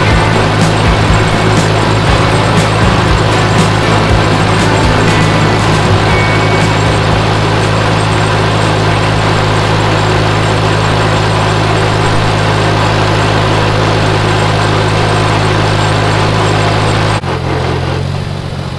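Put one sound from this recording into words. A tractor engine chugs loudly and steadily, then eases off near the end.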